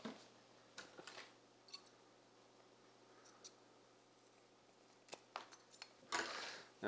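Thin leather strips tap and rustle softly against a hard surface.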